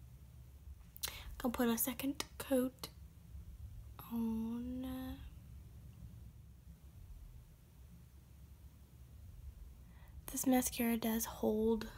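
A young woman talks calmly and close to a microphone.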